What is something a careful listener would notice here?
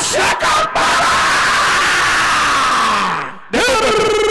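A crowd of men shouts and cheers loudly outdoors.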